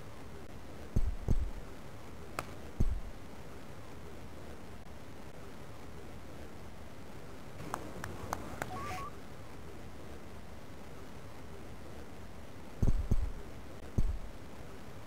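A cricket bat knocks a ball with a dull thud.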